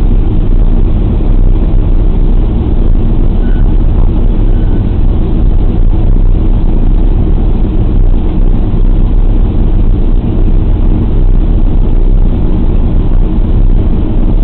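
The four radial piston engines of a B-24 bomber drone in flight, heard from inside the fuselage.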